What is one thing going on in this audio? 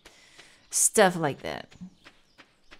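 A young woman speaks briefly and casually, close to a microphone.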